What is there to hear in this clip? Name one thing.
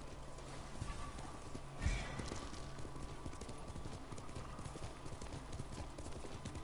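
A horse's hooves thud steadily on grass.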